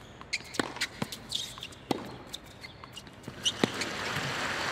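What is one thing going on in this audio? A tennis ball is struck back and forth with sharp thwacks.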